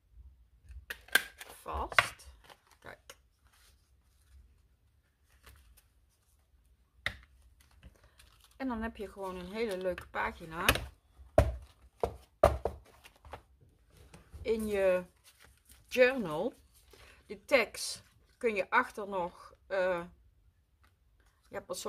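Paper pages rustle and flap as they are turned by hand.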